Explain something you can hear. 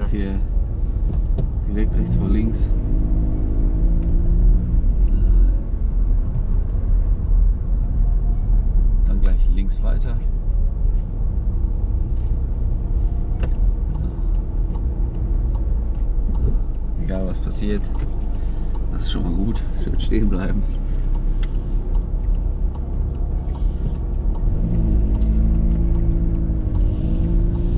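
A man talks calmly from the driver's seat nearby.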